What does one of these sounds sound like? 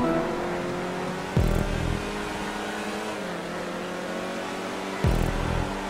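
Tyres squeal through corners.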